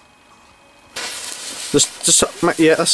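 A firework fuse fizzes and crackles.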